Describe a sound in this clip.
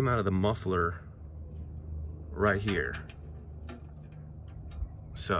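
A small screw scrapes and clicks against a metal guard.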